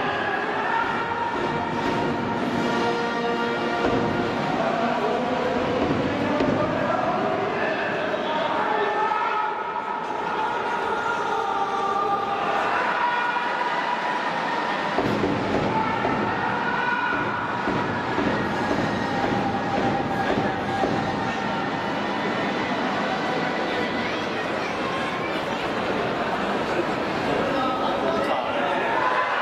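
A large crowd cheers and chants in a big echoing stadium.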